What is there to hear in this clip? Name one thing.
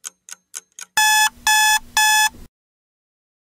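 A bright chime rings three times.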